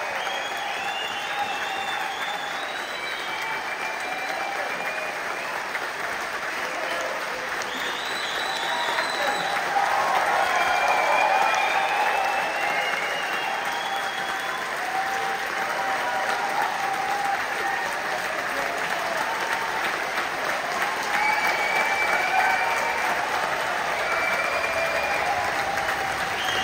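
A large crowd cheers and applauds loudly in an echoing hall.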